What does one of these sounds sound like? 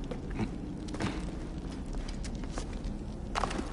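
A body lands with a heavy thud.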